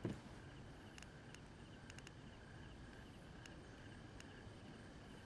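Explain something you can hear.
Short interface clicks tick now and then.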